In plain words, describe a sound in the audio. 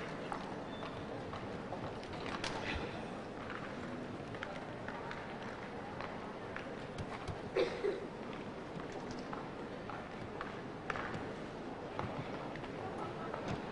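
Hooves thud on soft sand as a horse canters.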